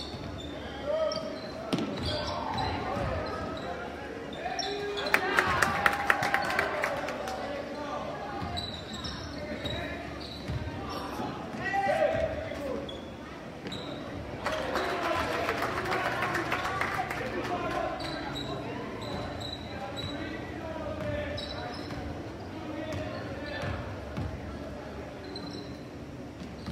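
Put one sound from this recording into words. A crowd of spectators cheers and chatters in a large echoing gym.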